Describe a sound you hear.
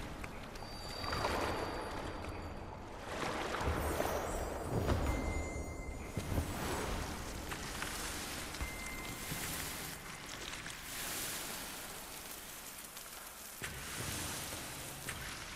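Soft sparkling chimes ring out.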